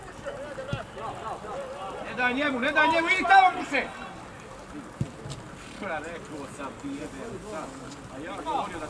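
Young men shout and call out to each other across an open outdoor field.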